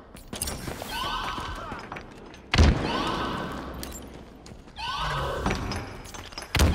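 An energy gun fires in short bursts with buzzing, sweeping zaps.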